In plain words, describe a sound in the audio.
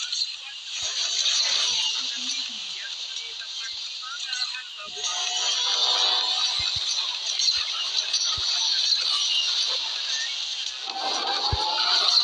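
A racing car's engine roars steadily at high speed.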